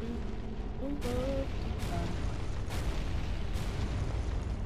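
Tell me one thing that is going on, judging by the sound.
Metal weapons clash in heavy blows.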